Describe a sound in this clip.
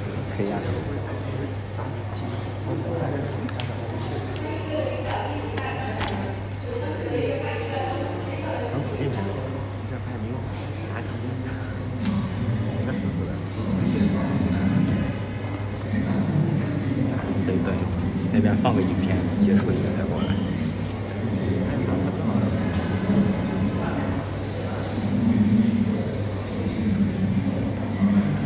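A crowd of men and women murmur and chatter nearby.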